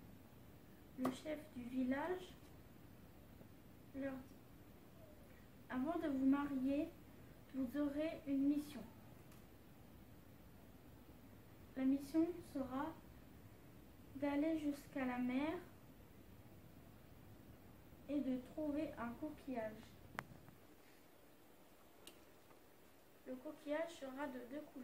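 A young woman speaks calmly, close by, in short phrases.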